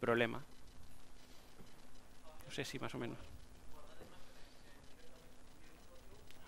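A man speaks calmly into a microphone in a large room with some echo.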